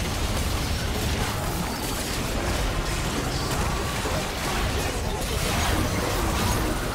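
Magic blasts crackle and burst in a hectic fight.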